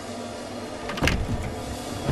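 A wooden door swings shut with a knock.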